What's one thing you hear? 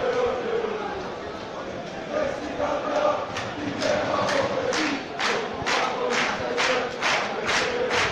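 A large crowd of fans sings and chants loudly in a stadium.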